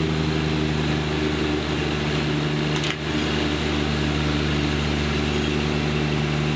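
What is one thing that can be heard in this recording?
A lawn sweeper whirs as it is towed across pavement.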